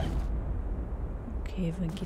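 A sudden magical burst whooshes and crackles.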